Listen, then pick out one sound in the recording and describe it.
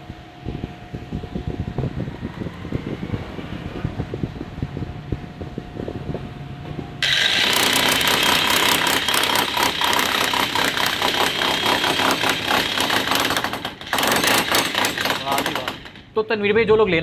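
A hammer drill pounds loudly and rapidly into hard material.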